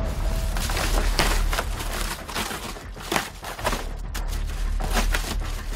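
Plastic sheeting and cardboard rustle and crinkle as hands pull them apart.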